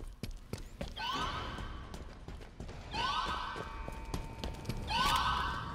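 A futuristic rifle fires in short bursts with a rising electronic whine.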